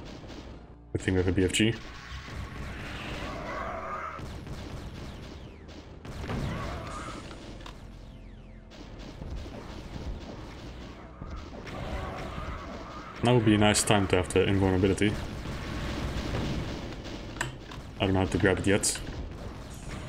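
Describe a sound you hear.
Video game guns fire in loud, rapid bursts.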